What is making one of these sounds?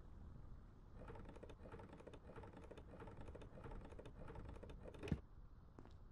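A winch handle rattles and clicks as it turns.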